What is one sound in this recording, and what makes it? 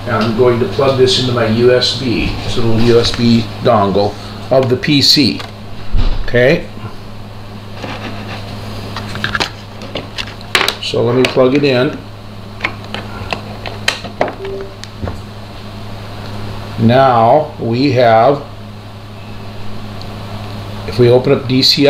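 An elderly man speaks calmly through a computer microphone, in short bursts with pauses.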